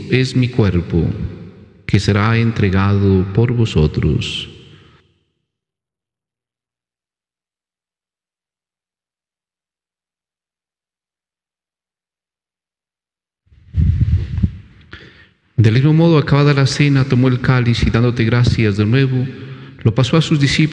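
A middle-aged man speaks calmly into a close microphone, as if reciting.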